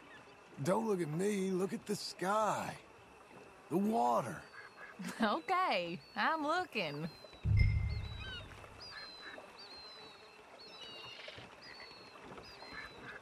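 Oars splash gently in calm water.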